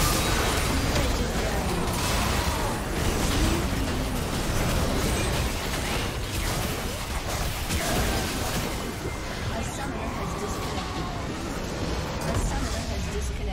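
Game spell effects crackle and whoosh in a busy fight.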